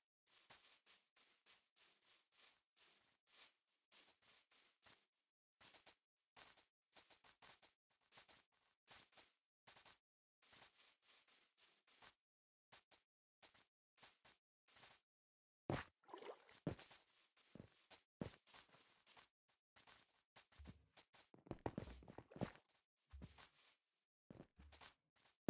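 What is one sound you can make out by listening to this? Quick footsteps crunch steadily over grass.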